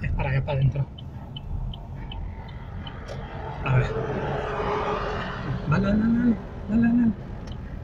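A big truck engine rumbles nearby.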